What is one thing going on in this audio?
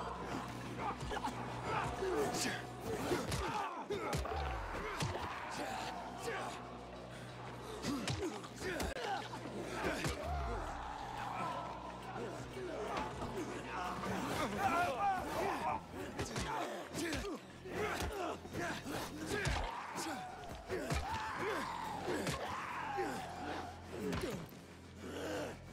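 A club thuds into bodies with heavy blows.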